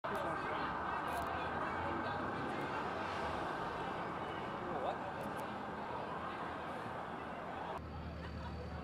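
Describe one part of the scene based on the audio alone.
A crowd of people talks and shouts outdoors.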